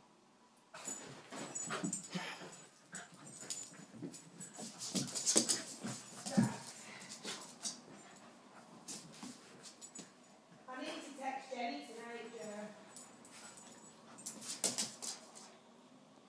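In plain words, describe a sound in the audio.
Small dog paws scuffle and thump on a rug.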